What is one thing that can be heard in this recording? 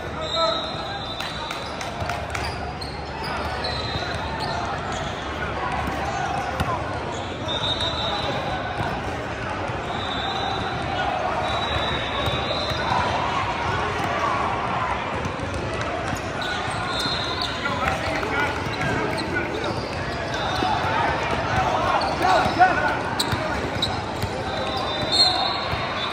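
Sneakers squeak on a wooden court in a large echoing gym.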